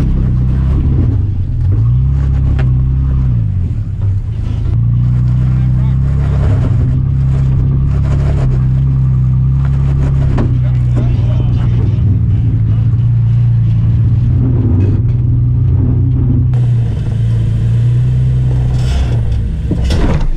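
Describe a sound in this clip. An engine idles and revs low and steady close by.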